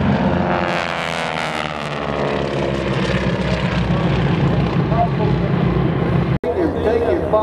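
Propeller plane engines drone overhead.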